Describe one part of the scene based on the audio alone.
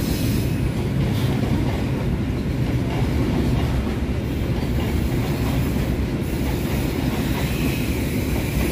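A freight train rumbles past close by, its wheels clattering steadily on the rails.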